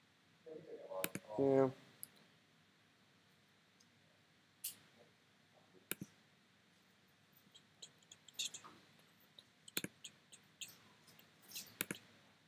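Short digital clicks and chimes sound as game cards are chosen and played.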